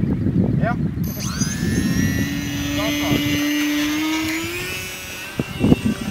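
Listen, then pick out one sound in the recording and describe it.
A model plane's engine whines at a high pitch.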